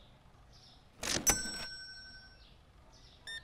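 A cash register drawer slams shut with a ringing chime.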